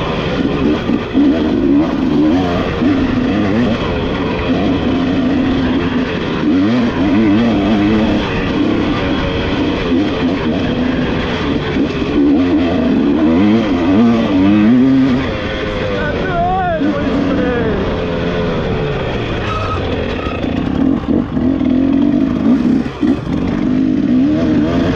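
A dirt bike engine revs and drones up close, rising and falling in pitch.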